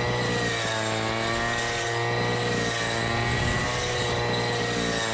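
A string trimmer's line whips and slashes through thick grass.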